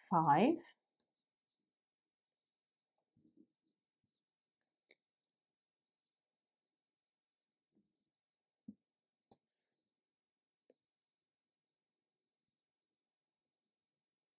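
A crochet hook softly catches and pulls yarn.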